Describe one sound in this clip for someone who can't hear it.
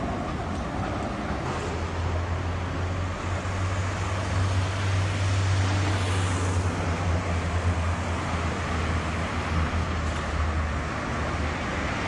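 A tram hums low and steadily as it rolls along rails.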